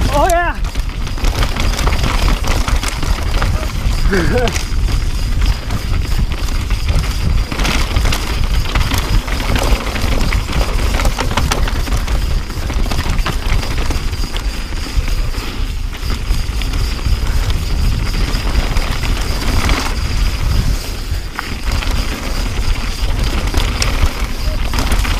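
Bicycle tyres rumble and crunch over a rocky dirt trail.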